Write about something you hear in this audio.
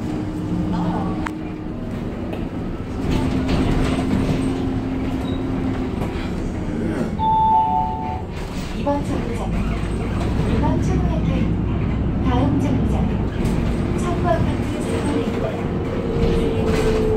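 Loose fittings rattle inside a moving bus.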